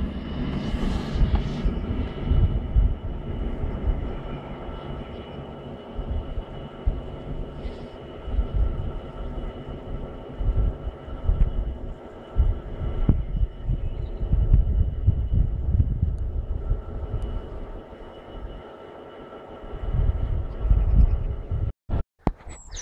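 Wind gusts roughly against the microphone outdoors.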